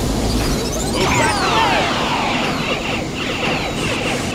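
Bright sparkling chimes of a game effect sweep downward.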